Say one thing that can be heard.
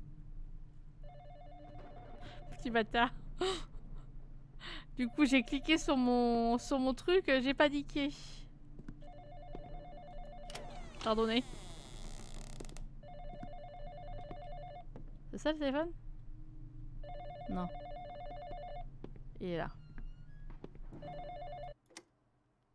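A telephone rings in short repeated bursts.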